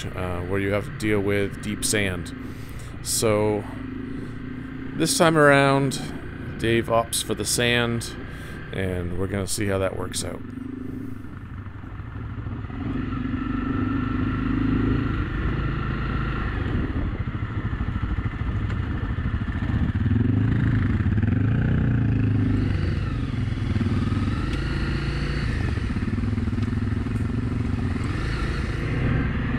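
A motorcycle engine rumbles and revs nearby.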